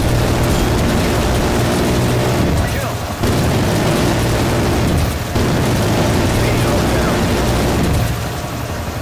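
A heavy machine gun fires in long, rapid bursts.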